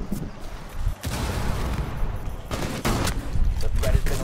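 A rifle fires a rapid burst of loud gunshots.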